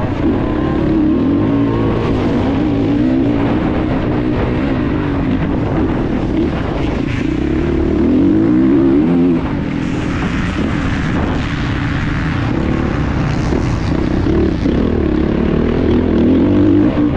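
A dirt bike engine revs hard and changes pitch up close.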